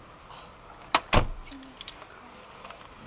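A car door opens with a thud.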